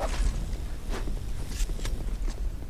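Metal weapons clash and strike in a fight.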